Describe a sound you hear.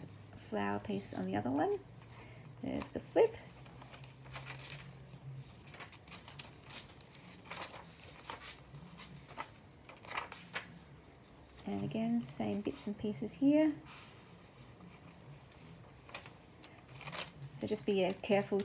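Stiff paper pages rustle and flap as they are turned.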